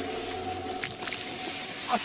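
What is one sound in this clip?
Water splashes and hisses on hot stones.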